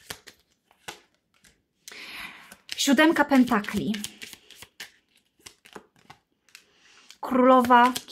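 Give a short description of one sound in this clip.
Playing cards slide and tap softly onto a table.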